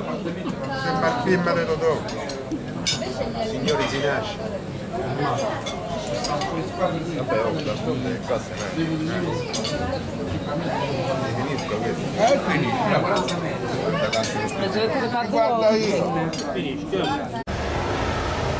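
Men talk with animation nearby.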